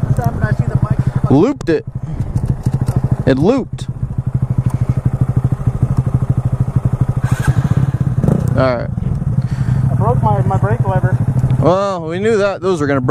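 A small motorcycle engine idles with a fast, throbbing putter, close by.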